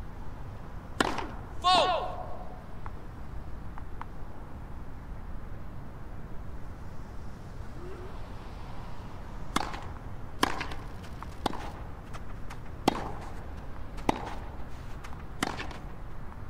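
A tennis ball is struck hard with a racket, again and again.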